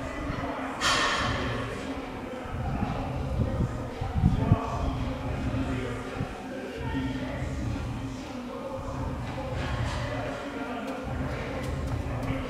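Footsteps scuff on concrete.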